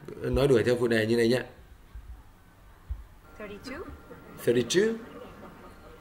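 A young woman asks questions calmly.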